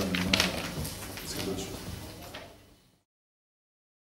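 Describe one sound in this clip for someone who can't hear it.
A young man speaks calmly and close into microphones.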